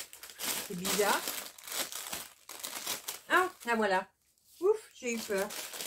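Paper packets slide and rustle.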